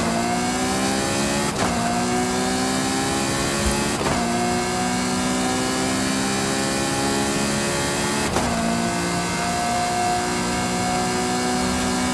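A sports car engine roars at high revs, rising in pitch and dropping briefly at each gear shift.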